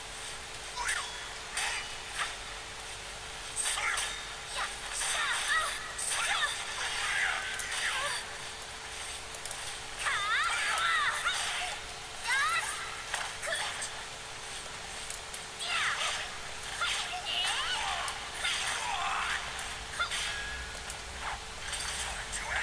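Swords clash and slash in quick strikes.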